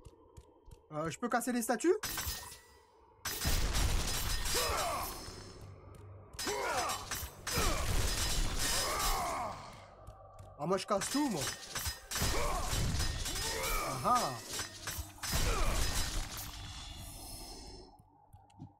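Chained blades whoosh and slash through the air.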